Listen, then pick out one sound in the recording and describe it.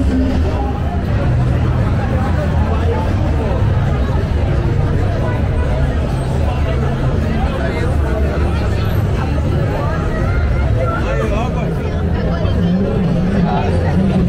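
A large crowd of men and women chatters loudly outdoors.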